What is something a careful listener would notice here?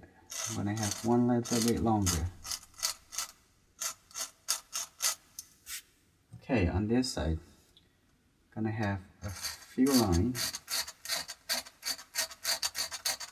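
A pencil scratches lightly across paper in short strokes.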